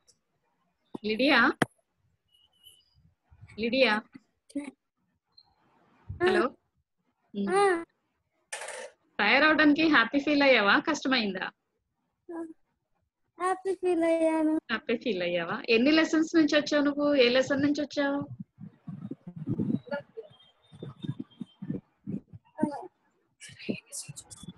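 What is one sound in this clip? A young girl talks cheerfully close to a phone microphone.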